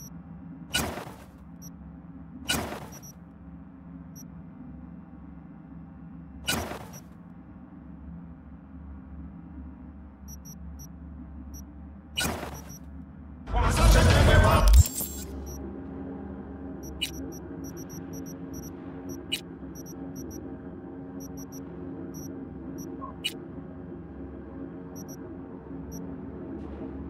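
Game menu sounds click and beep in quick, short bursts.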